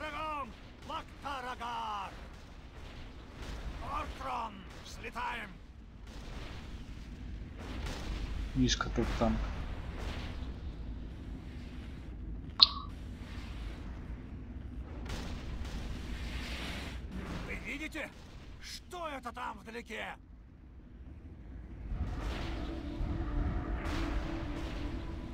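Game spell effects whoosh and crackle in short bursts.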